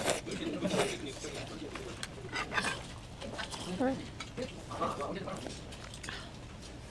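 A woman chews wet food with soft smacking sounds, close to a microphone.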